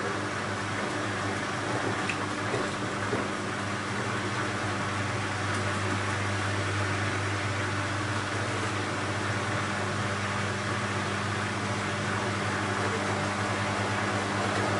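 Water sloshes and swishes inside a washing machine drum.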